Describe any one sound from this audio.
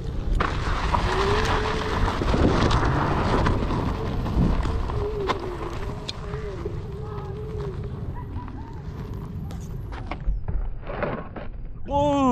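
Wheels roll and crunch over gravel and dry grass.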